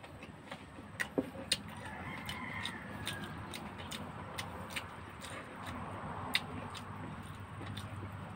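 A man peels the cracked shell of a boiled duck egg.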